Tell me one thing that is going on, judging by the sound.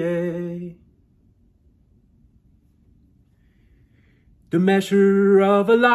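A middle-aged man sings loudly close by, holding long notes.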